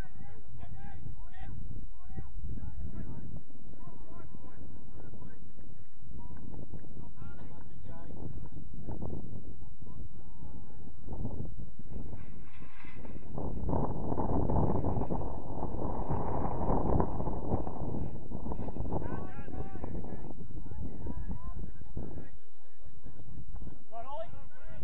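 Young players shout to each other across an open field in the distance.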